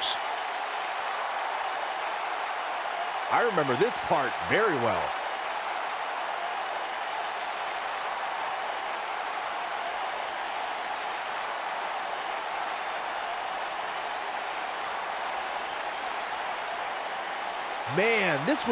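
A large crowd cheers and roars steadily.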